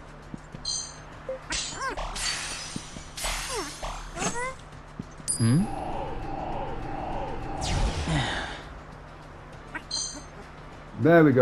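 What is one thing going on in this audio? A short bright chime rings twice.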